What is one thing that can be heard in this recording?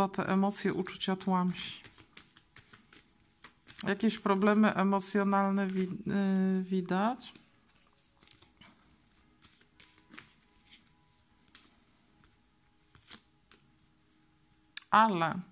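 Playing cards riffle and slap together as they are shuffled by hand.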